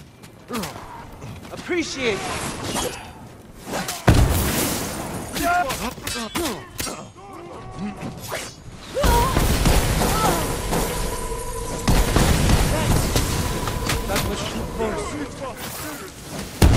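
Swords clash and slash in quick, sharp strikes.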